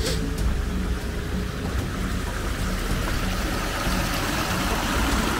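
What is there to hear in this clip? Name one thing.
A shallow stream trickles and splashes over stones.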